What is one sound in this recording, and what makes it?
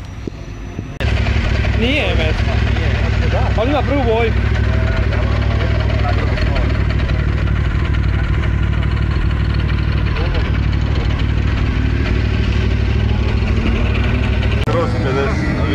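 A small motorcycle engine idles close by with a steady low rumble.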